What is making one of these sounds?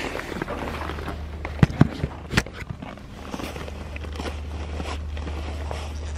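A goat sniffs and bumps against the microphone up close.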